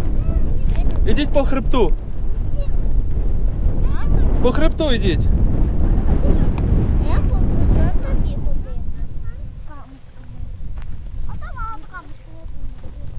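A young child calls out in a high voice at a distance.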